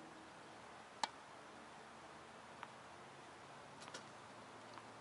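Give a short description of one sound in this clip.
A tennis ball is hit with a racket, with a few sharp pops now and then.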